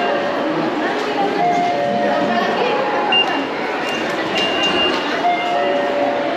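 Ticket gates beep in short tones.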